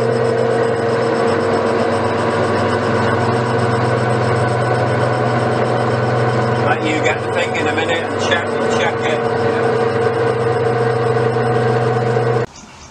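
A metal lathe hums steadily while cutting metal.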